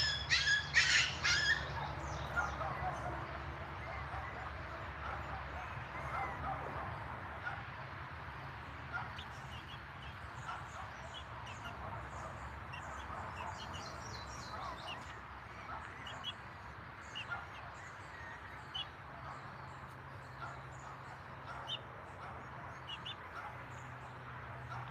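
Puppies whimper and yip softly.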